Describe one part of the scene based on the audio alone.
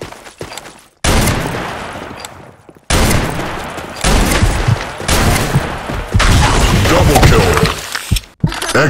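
A sniper rifle fires loud, echoing shots.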